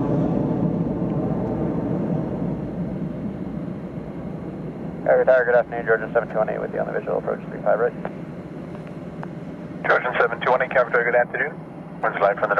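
A jet engine roars overhead and slowly fades as the plane climbs away.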